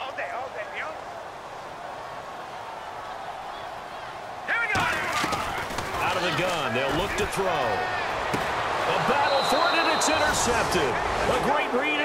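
A stadium crowd roars and swells loudly.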